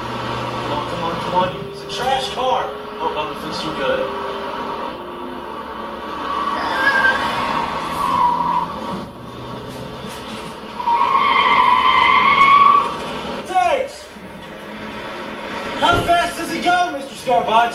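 A man talks nearby inside a car.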